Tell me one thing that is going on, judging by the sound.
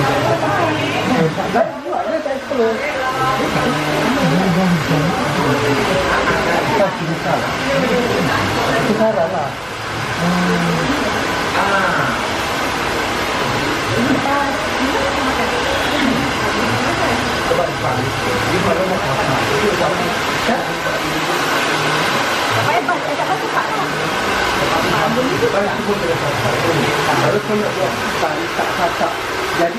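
Several people talk in the background.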